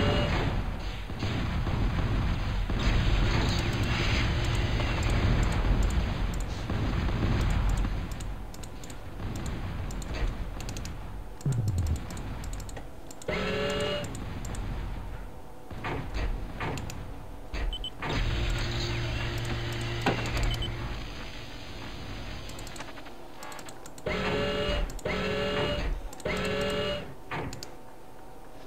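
Laser weapons fire in short bursts.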